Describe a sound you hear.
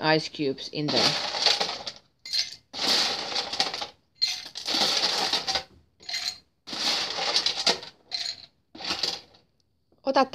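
Ice cubes rattle and clatter into a metal shaker.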